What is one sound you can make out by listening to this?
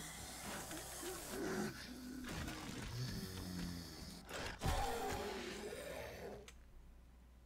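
A zombie growls and groans nearby.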